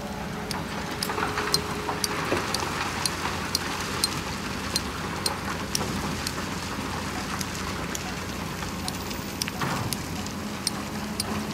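Rocks and earth tumble into a truck bed with a rough clatter.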